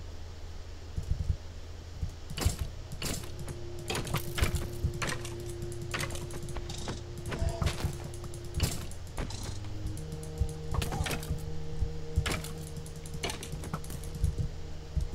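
Bones rattle and clatter in quick, sharp clicks.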